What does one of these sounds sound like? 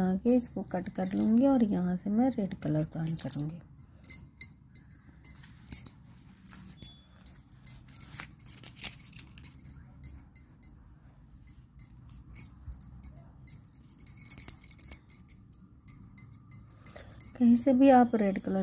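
Yarn rustles softly as it is handled.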